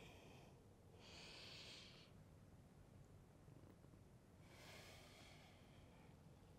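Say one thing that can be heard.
A woman breathes out slowly and audibly.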